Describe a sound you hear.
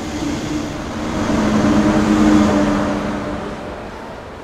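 A train approaches with a rising, humming whine, then fades.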